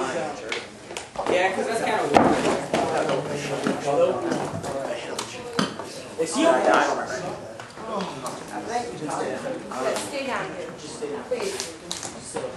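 Several children talk and call out with animation close by.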